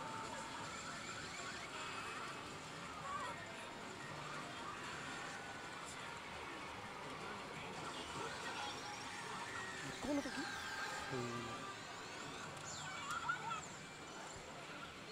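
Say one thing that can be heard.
A slot machine plays electronic music and sound effects.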